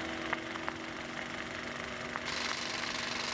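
A film projector whirs and clatters steadily.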